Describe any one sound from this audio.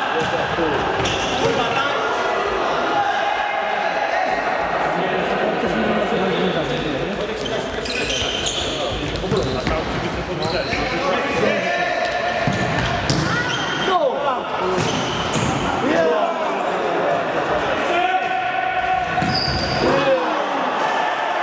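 Sneakers squeak on an indoor court floor in an echoing hall.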